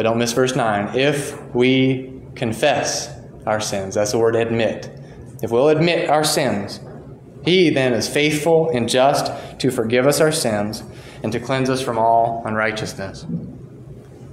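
A young man speaks with animation through a microphone in an echoing room.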